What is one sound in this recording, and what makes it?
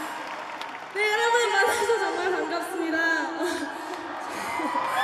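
A young woman speaks through a microphone over loudspeakers in a large echoing space.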